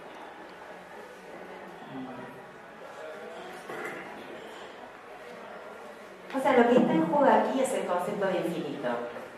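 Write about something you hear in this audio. A middle-aged woman speaks calmly into a microphone, amplified in a room.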